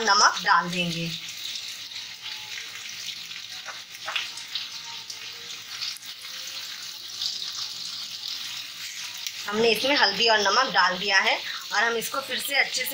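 Potatoes sizzle softly in hot oil in a pan.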